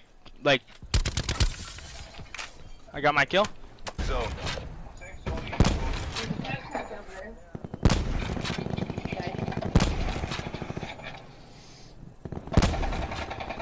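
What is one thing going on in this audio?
A sniper rifle fires loud, sharp shots.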